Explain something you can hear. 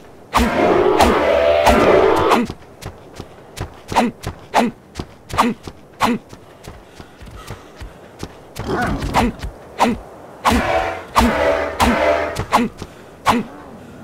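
A large creature bellows with deep, honking calls.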